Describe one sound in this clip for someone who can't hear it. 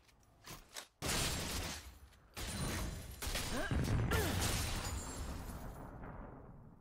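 Video game battle effects whoosh and crackle in quick bursts.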